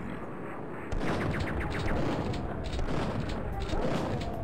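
A shotgun fires in loud blasts.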